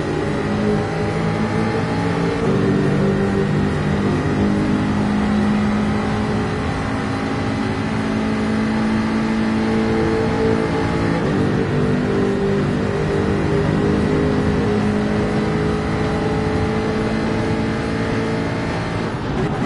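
A racing car engine roars steadily at high speed, its pitch rising and falling with gear changes.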